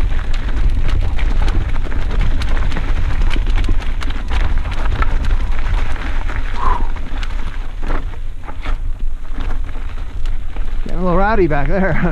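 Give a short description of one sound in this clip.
Mountain bike tyres roll down a dirt singletrack and over rocks.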